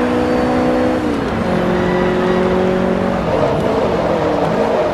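A racing car engine drops in pitch as the gear shifts, then climbs again.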